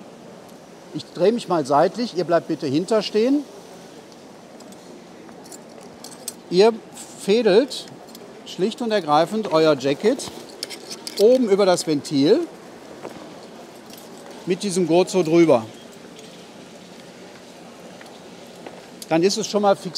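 An older man speaks calmly, close by, in short bursts.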